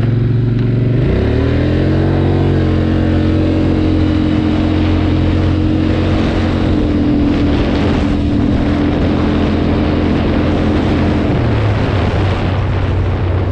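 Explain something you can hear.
Tyres rumble over cobblestones.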